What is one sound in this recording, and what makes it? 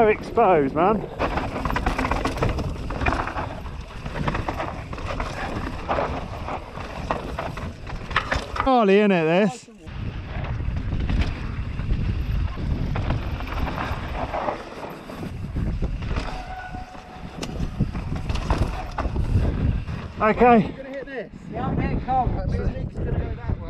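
A bicycle frame rattles over bumps.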